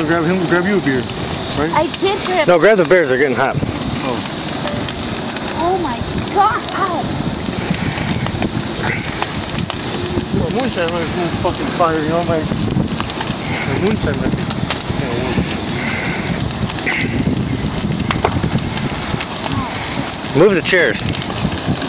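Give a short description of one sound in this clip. A large bonfire roars and crackles outdoors.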